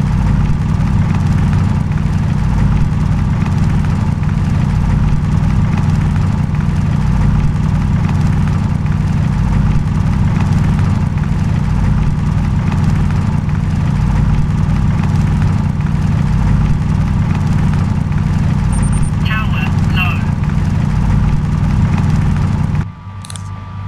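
A drill whirs with a steady low hum.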